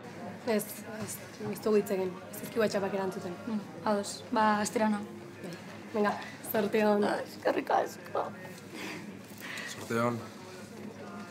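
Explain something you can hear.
Young women talk and laugh with animation nearby.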